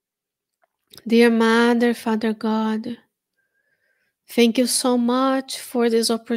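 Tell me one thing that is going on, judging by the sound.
A woman sings slowly and steadily into a close microphone.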